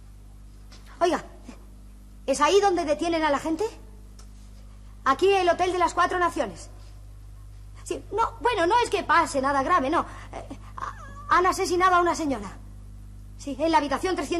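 A woman speaks anxiously into a telephone, close by.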